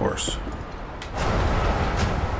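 A door slides open.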